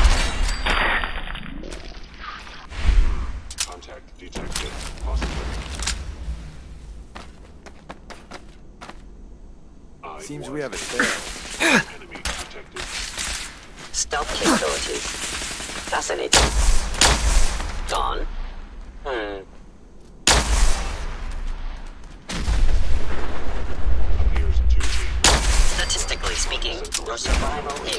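Guns fire in loud, booming bursts.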